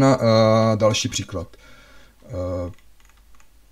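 A man speaks calmly and closely into a microphone, with long drawn-out sounds.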